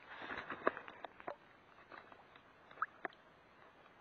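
A fish splashes softly as it is slipped back into the water.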